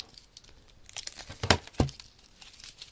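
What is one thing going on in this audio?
A plastic game case rustles and taps under a hand.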